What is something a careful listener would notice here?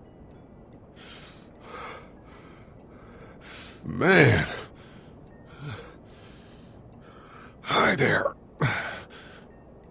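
A man pants and gasps heavily.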